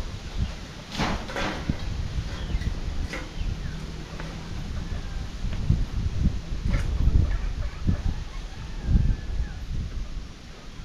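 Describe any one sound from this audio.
Wooden boards knock and clatter as a man handles them.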